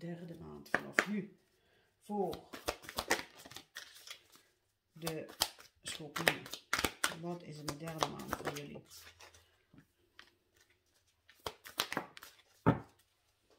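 Playing cards riffle and shuffle in hands.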